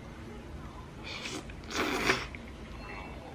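A woman chews and slurps noodles close up.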